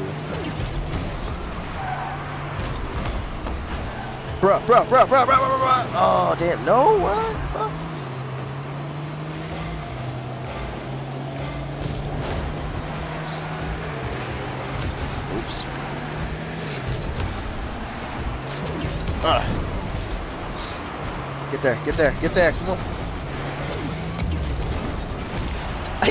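A ball thumps as a car strikes it.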